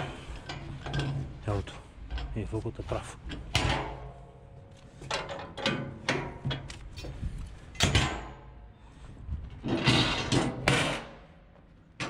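Footsteps thud on a metal plate.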